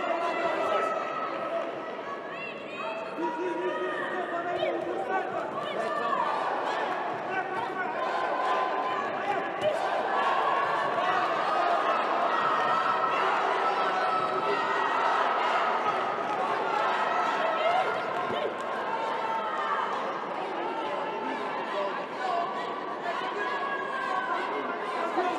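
A large crowd cheers and shouts throughout.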